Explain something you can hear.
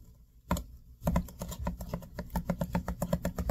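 A spatula stirs a thick, wet mixture in a glass bowl with quick squelching taps.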